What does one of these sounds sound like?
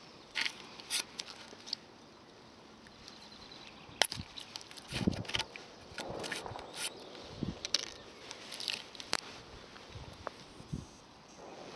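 A metal tin clicks and taps as it is handled.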